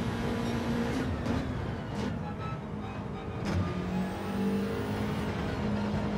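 A racing car engine drops in pitch while braking, then climbs again.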